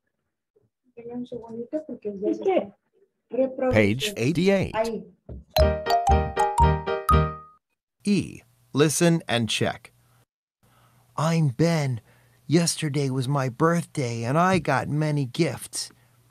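A woman speaks through an online call.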